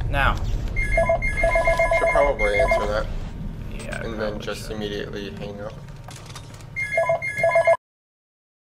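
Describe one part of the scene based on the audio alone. A soft electronic chime hums and beeps.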